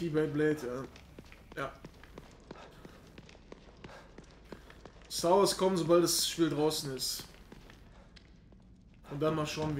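Footsteps crunch slowly over stone and gravel.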